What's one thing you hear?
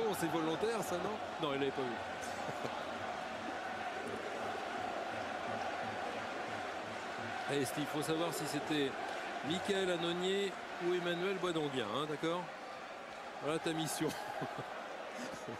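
Football fans chant and sing together in the stands.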